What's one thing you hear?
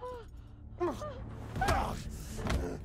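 A man grunts and strains in a struggle.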